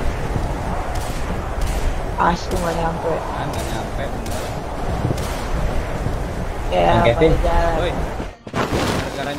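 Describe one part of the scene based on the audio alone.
Wind rushes loudly past during a fast glide through the air.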